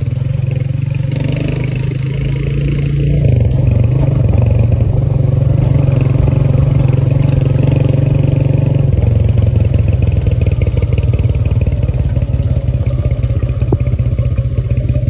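A small motorcycle engine hums steadily and revs up and down.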